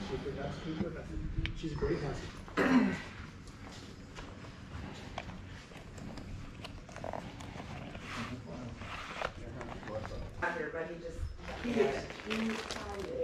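Several adults talk nearby.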